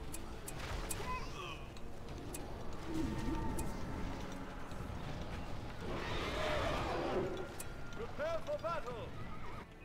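Swords clash and metal ring in a battle.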